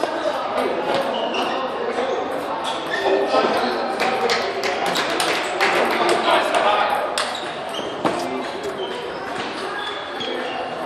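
Many voices chatter in a large echoing hall.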